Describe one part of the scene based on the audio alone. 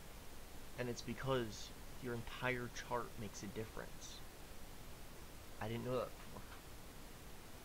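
A young man talks casually and close into a microphone.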